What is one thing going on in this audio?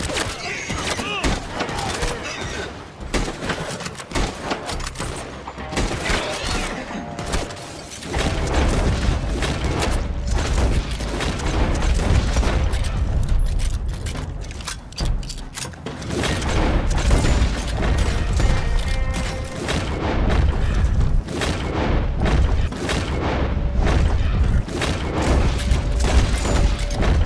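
A rifle fires shots.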